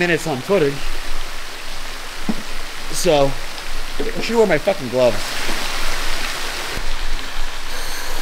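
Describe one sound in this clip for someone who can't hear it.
Water laps and splashes gently around a swimmer.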